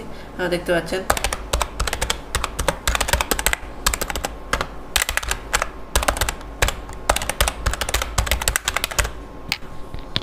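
Keys on a keyboard click rapidly as someone types.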